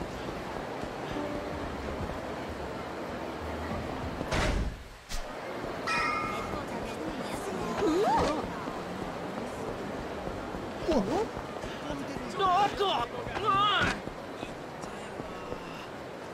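A crowd murmurs in a busy street.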